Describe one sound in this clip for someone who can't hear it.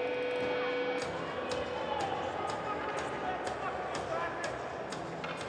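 A crowd claps in steady rhythm in a large echoing arena.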